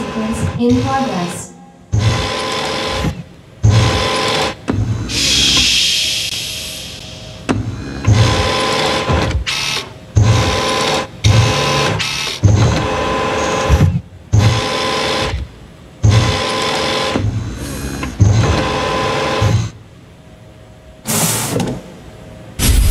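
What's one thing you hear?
A robotic arm whirs and hums in short bursts as it moves.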